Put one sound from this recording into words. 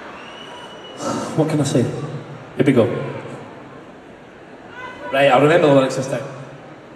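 A young man sings into a microphone, heard through loud speakers in a large echoing hall.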